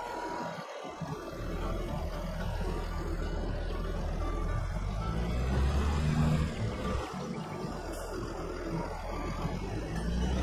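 A tractor engine rumbles steadily.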